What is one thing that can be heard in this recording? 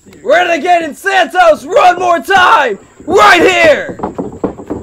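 A man shouts loudly and theatrically nearby.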